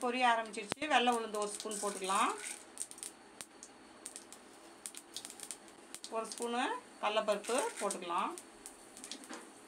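Seeds drop into a pan.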